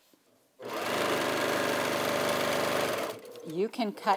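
A sewing machine whirs rapidly as it stitches.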